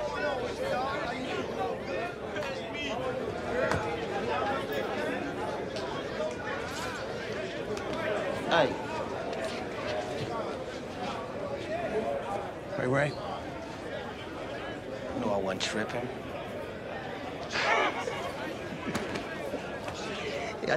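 A crowd of men murmur and talk in an echoing room.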